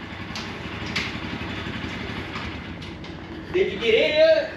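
A motorcycle engine idles nearby.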